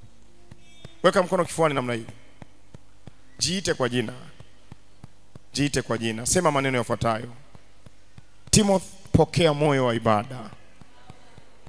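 A young man speaks with animation into a microphone, in short bursts with pauses.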